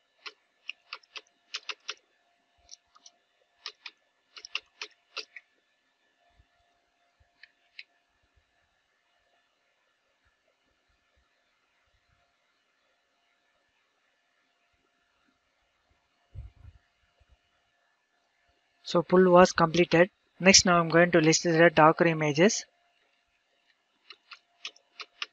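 Keys click quickly on a keyboard as someone types.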